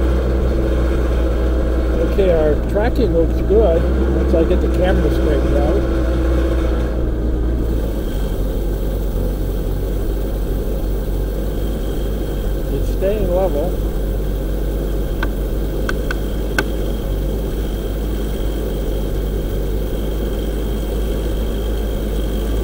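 A machine's motor hums steadily and low throughout.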